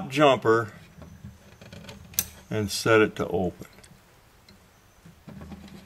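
A small plastic part clicks as fingers press it onto metal pins.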